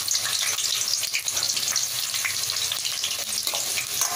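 Chopped peppers tumble from a steel plate into a sizzling pan.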